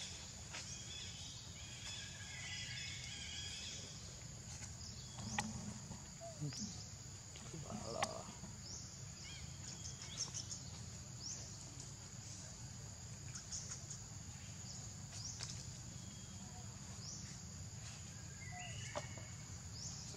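Dry leaves rustle as monkeys move on the ground.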